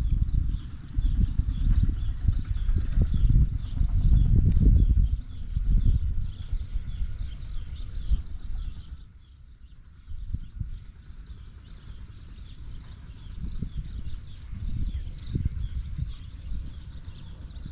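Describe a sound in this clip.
Wind gusts buffet loudly outdoors, easing off for a moment and then picking up again.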